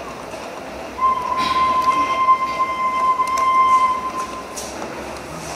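A singer holds a single long, steady high note.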